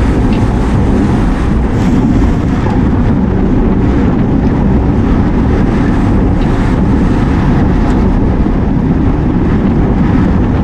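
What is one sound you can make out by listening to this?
Wind rushes loudly over the microphone.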